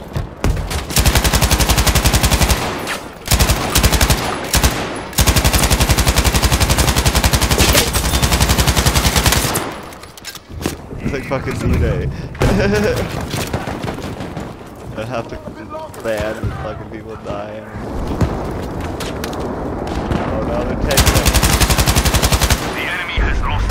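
A heavy machine gun fires long rapid bursts close by.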